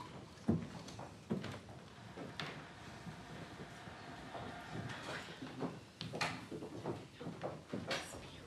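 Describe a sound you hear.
A man speaks slowly on a stage, heard through a microphone in an echoing hall.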